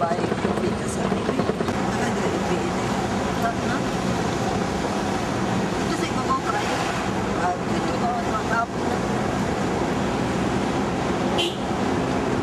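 Tyres rumble and rattle over a rough dirt road.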